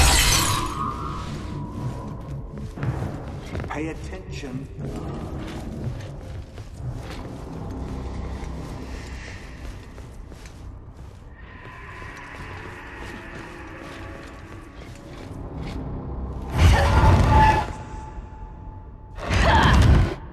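Dark game music drones steadily.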